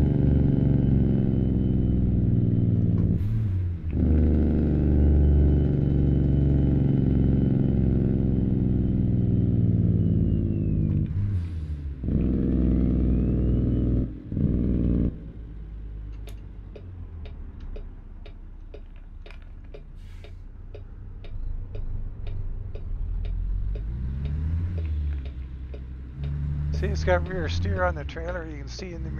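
A truck's diesel engine roars and drops in pitch with each gear change.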